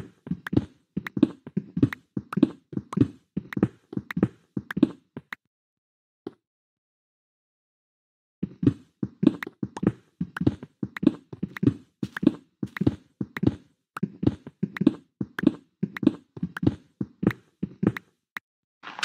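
A pickaxe chips at stone in quick, repeated taps.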